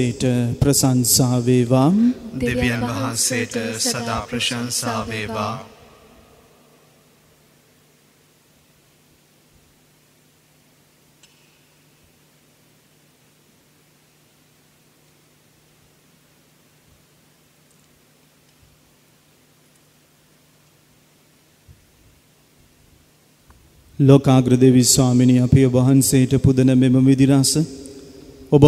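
A man chants a prayer through a microphone, ringing in a large echoing hall.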